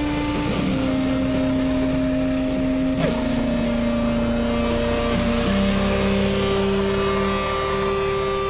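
A motorbike engine hums as it passes nearby.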